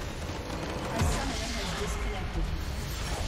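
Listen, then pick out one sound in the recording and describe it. A large structure explodes with a deep boom.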